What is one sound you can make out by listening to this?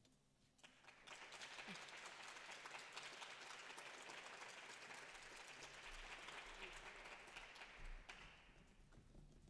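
Dancers stamp their heels rapidly on a wooden stage in a large hall.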